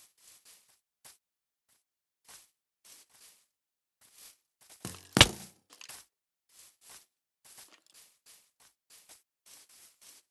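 Footsteps crunch softly on grass and dirt at an even pace.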